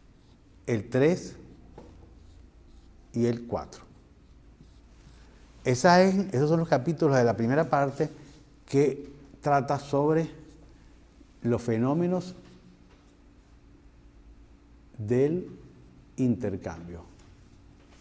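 An elderly man speaks calmly and slowly, close by, with pauses.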